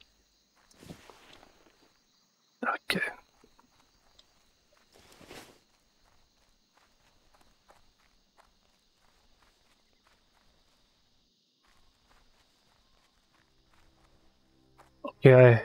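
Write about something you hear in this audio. Soft footsteps patter quickly on grass.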